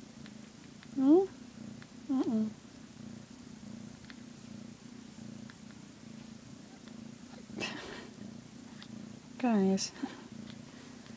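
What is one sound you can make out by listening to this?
A cat lets out short, loud, rising cries.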